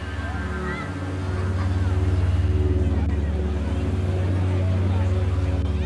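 Small waves wash onto a beach.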